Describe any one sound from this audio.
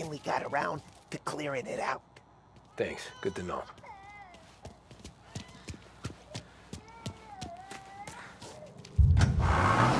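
Footsteps tap on hard ground.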